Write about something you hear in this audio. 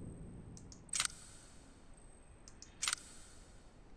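Short soft clicks sound.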